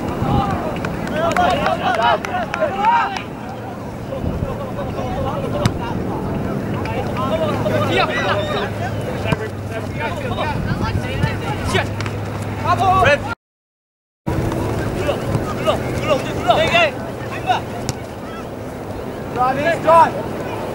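Players shout to each other from a distance across an open field outdoors.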